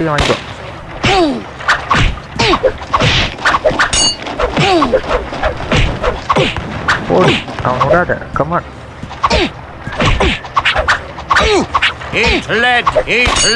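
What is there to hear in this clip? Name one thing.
Swords clash and clang rapidly in a sword fight.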